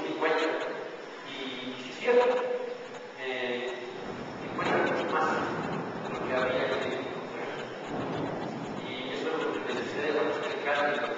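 A man speaks with animation in a large echoing hall.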